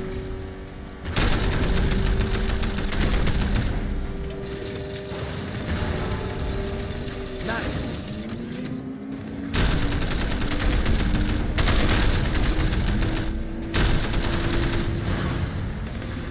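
A car engine roars and revs at speed.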